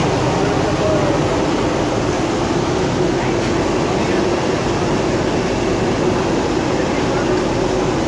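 Hot oil bubbles and sizzles steadily in a frying pan.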